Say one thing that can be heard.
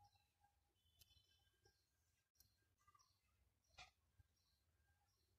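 A crochet hook softly rubs and ticks against yarn.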